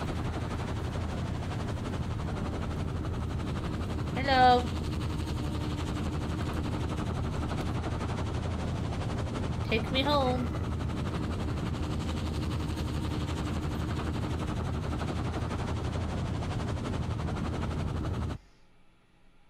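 A helicopter's rotor thumps and roars steadily.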